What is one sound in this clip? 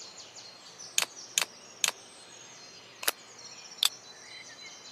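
Short clicks sound as menu buttons are tapped.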